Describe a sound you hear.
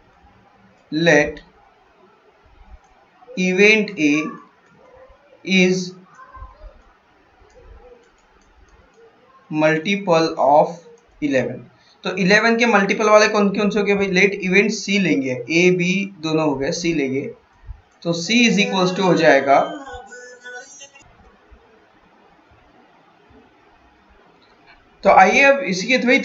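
A man explains calmly and clearly into a close microphone, with pauses.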